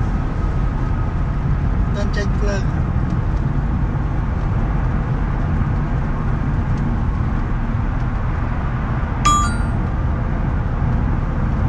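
A car engine hums steadily with road noise from inside a moving car.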